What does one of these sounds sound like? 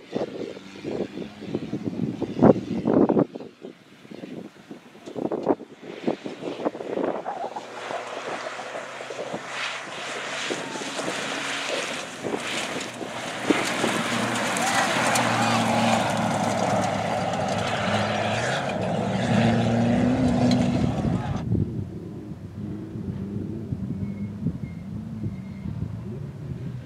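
A rally truck engine roars and revs hard as it speeds past.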